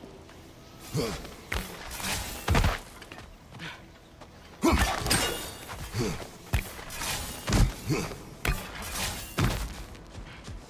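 A man grunts with effort while climbing.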